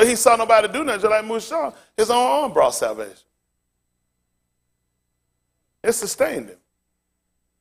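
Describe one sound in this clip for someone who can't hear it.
A man speaks calmly into a clip-on microphone, pausing between phrases.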